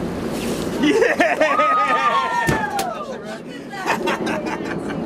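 A large fish thrashes and thumps on a deck.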